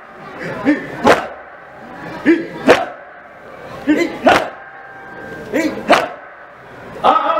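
Several men strike their chests in a steady rhythm.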